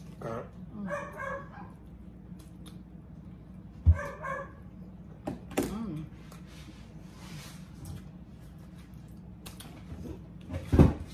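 A woman chews food noisily close by.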